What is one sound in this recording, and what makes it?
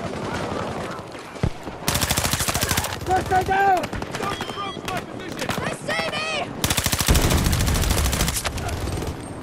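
Explosions boom nearby.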